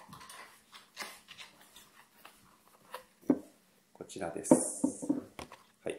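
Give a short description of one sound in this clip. A cardboard box rustles in a man's hands.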